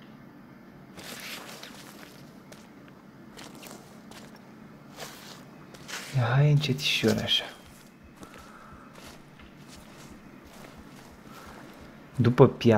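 Branches rustle and snap as someone pushes through dense brush.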